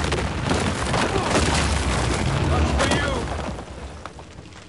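A loud explosion booms and rumbles, then fades away.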